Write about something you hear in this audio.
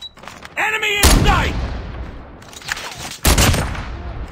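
A sniper rifle fires a loud single shot.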